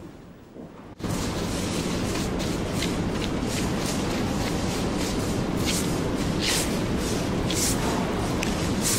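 A shovel scrapes across gritty dirt.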